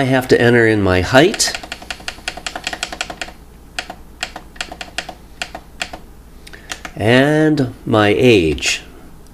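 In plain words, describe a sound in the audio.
A finger taps a button with quick, repeated clicks.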